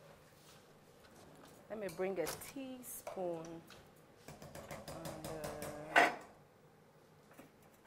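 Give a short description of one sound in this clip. A metal spoon scrapes and stirs food in a pot.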